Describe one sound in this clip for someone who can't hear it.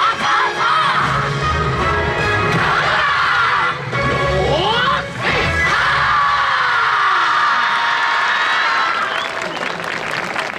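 Loud music with a pounding drum beat plays over outdoor loudspeakers.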